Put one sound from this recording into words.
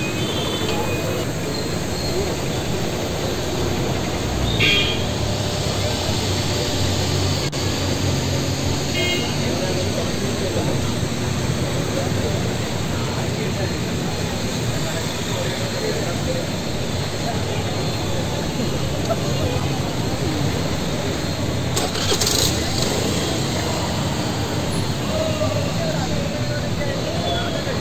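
A crowd of men chatters nearby.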